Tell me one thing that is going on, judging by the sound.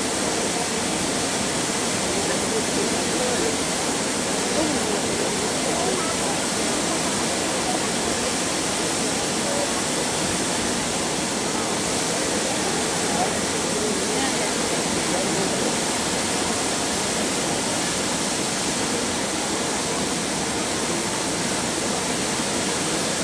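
Water sprays steadily into the air with a constant rushing hiss.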